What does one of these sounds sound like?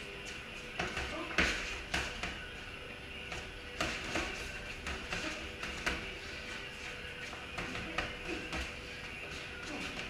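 Sneakers shuffle and squeak on a concrete floor.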